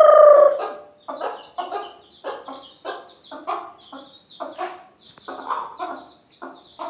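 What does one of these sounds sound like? Chicks peep.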